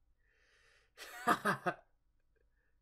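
A young man laughs briefly close by.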